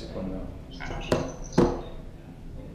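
A phone knocks on a hard table.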